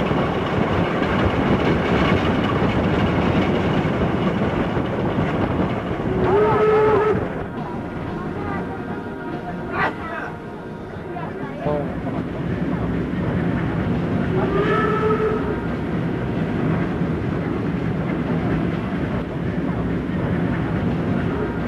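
A steam train rumbles along on the rails at speed.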